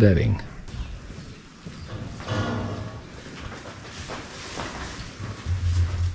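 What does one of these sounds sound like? A bale of hay rustles as it is carried and dropped.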